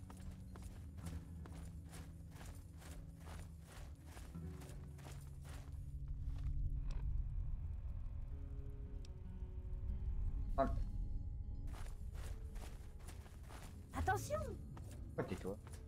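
Footsteps crunch steadily on a rocky floor.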